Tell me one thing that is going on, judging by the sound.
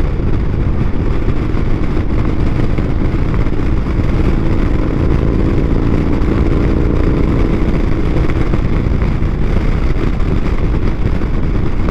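Wind roars loudly past the rider.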